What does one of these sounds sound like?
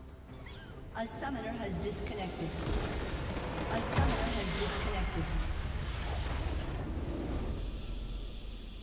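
A building in a game explodes with a loud, rumbling blast.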